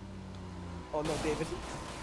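Tyres skid on a road.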